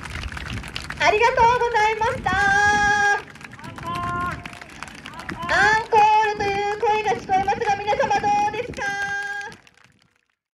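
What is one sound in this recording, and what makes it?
Trumpets play loud, bright fanfare calls outdoors.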